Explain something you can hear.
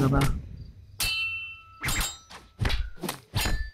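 Blades clash and strike in a fight.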